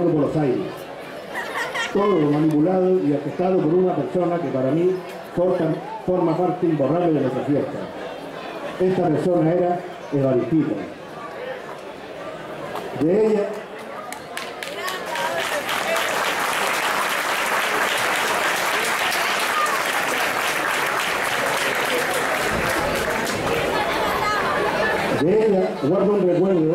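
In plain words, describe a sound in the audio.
A middle-aged man speaks into a microphone over loudspeakers.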